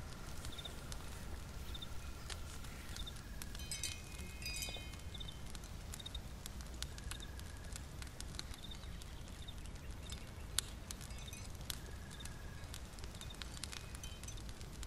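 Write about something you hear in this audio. A small fire crackles and pops softly.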